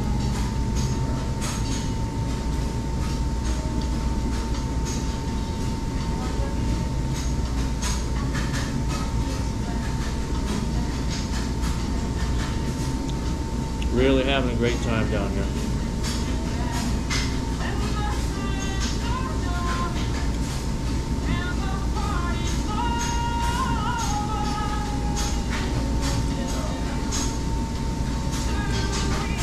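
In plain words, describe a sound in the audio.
A man chews food noisily up close.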